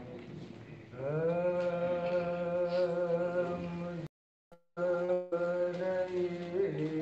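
A middle-aged man chants in a long, held singing voice into a microphone.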